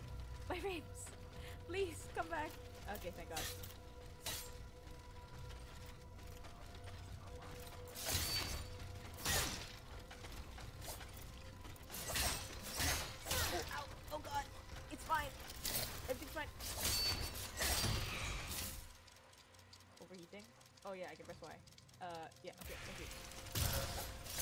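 Weapons clash and strike with sharp impacts.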